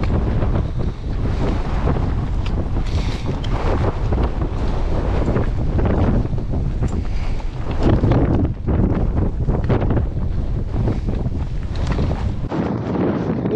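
Strong wind buffets a microphone outdoors.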